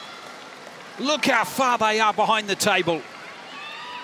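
A young man shouts loudly in triumph.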